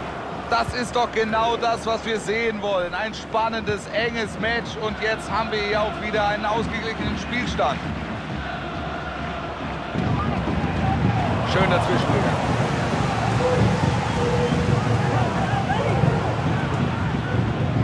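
A large stadium crowd cheers and roars, growing louder.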